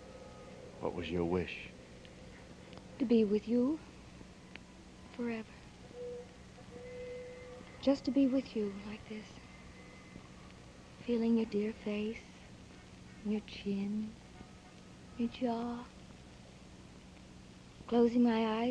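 A woman speaks with anguish into a microphone, in short bursts.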